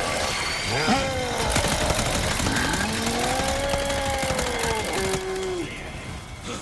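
A chainsaw engine revs loudly, its pitch rising and falling.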